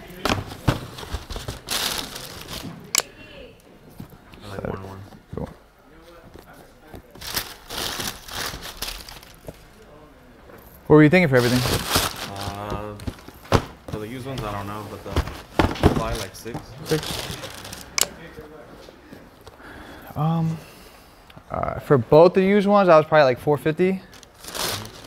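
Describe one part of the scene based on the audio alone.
Cardboard shoe boxes rustle and thump as they are handled.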